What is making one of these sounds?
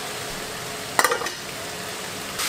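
A metal lid clanks down onto a pot.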